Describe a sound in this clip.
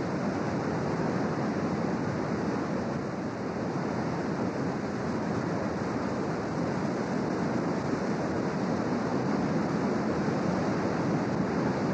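Ocean waves crash and break with a roar.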